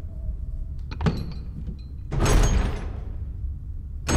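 Heavy metal doors creak and swing open with a loud boom.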